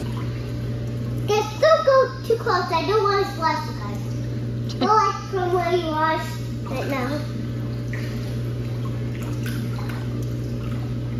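Water splashes gently as a small child paddles.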